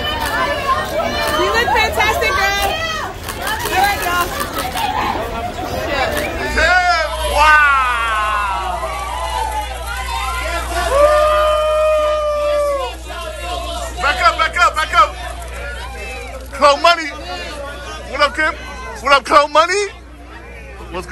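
A crowd of men and women shout and call out close by, with overlapping voices.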